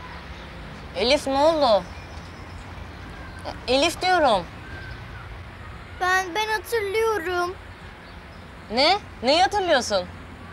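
A teenage boy speaks nearby, with emotion.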